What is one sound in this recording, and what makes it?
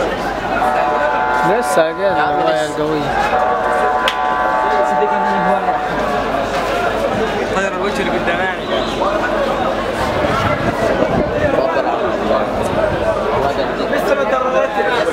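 A crowd of men shouts and talks excitedly outdoors.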